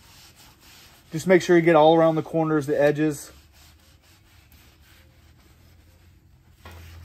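A cloth rubs and scrapes across a metal griddle.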